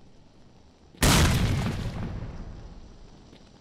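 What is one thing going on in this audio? A door bangs open with a loud thud.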